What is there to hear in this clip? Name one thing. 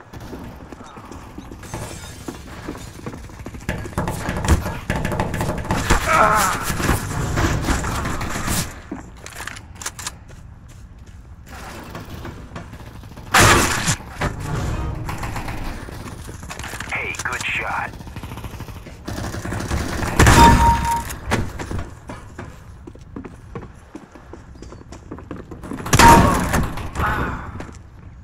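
Footsteps thud on wooden floors and stairs.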